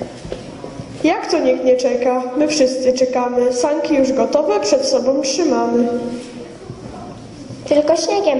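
A young boy sings into a microphone, heard through loudspeakers in an echoing hall.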